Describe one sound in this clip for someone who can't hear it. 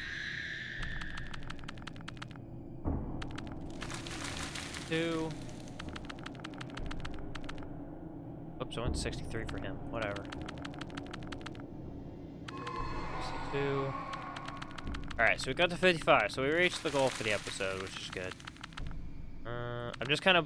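A game plays rapid clicking sound effects.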